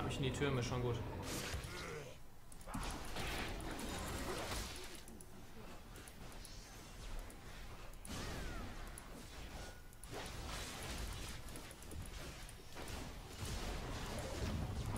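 Game battle effects clash and crackle.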